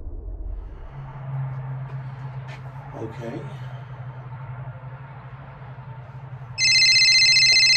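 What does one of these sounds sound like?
A middle-aged man talks nearby in a raised voice.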